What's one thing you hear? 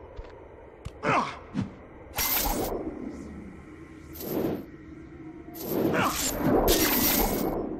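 A grappling chain whooshes as a figure swings through the air.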